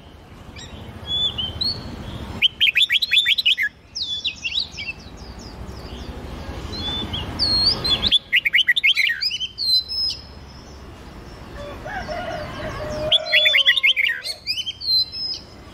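Songbirds sing in quick, bright whistled phrases and trills.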